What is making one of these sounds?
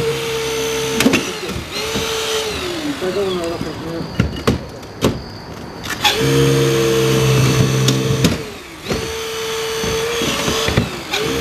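Car door metal creaks and snaps under the tool.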